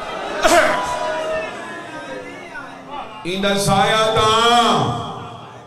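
A young man speaks passionately into a microphone, his voice rising to a loud, sung cry.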